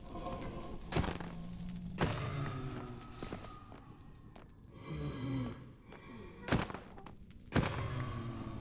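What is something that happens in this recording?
Blows land and creatures cry out in pain.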